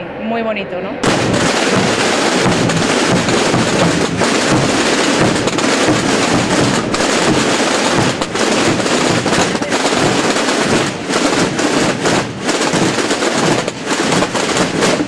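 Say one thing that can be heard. Many drums beat loudly in a marching procession outdoors.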